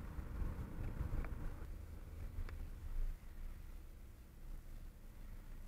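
A car engine rumbles low from inside as the car drives along a road.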